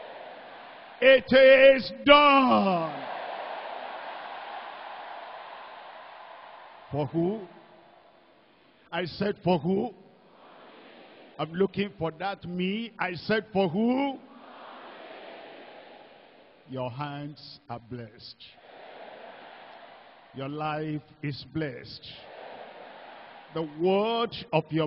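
An elderly man speaks with fervour through a microphone, echoing in a large hall.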